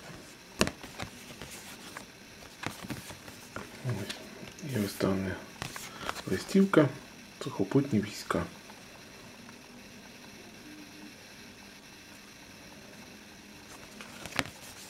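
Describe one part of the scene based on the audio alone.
Stiff paper cards rustle and slide against each other up close.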